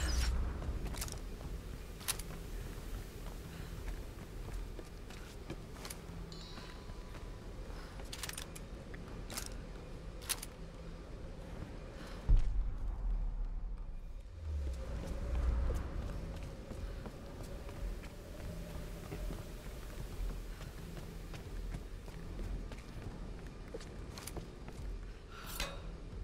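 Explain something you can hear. Footsteps crunch on dirt and wooden planks.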